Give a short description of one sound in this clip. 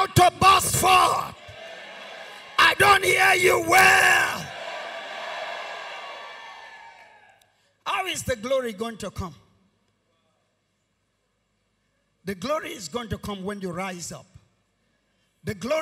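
A man speaks forcefully into a microphone through loudspeakers in a large echoing hall.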